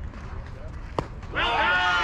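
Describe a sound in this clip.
A bat strikes a softball with a sharp crack.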